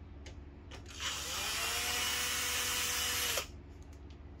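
An electric screwdriver whirs briefly.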